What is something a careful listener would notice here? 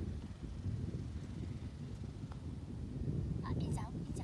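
A golf putter taps a ball.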